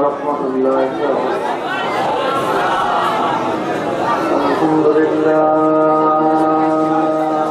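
A middle-aged man speaks into a microphone over a loudspeaker, in a melodic preaching voice.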